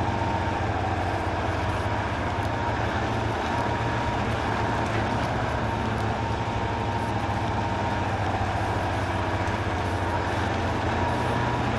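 Tyres crunch over rough dirt ground.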